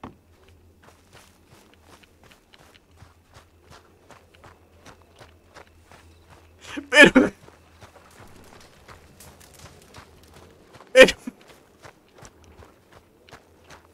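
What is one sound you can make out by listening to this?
Footsteps crunch steadily on dirt.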